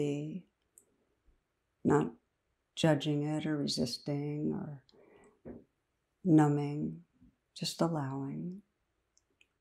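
A middle-aged woman speaks calmly and close to the microphone, in short phrases with pauses.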